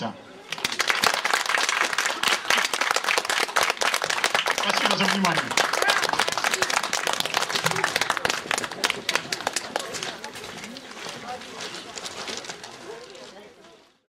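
A group of people clap their hands loudly outdoors, and the applause slowly fades.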